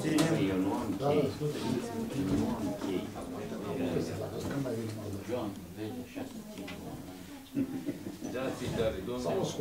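Paper sheets rustle as they are handled.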